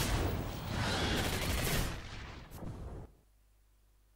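A monster roars loudly.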